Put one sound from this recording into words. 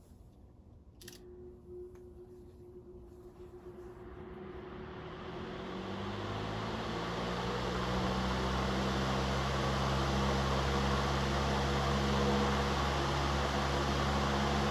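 Electric fans spin up and whir with a rushing of air that grows louder and then holds steady.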